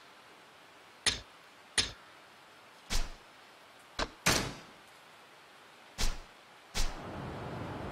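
Short, sharp menu blips sound one after another.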